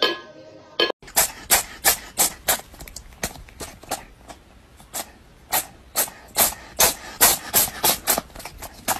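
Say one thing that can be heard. A cat sneezes repeatedly.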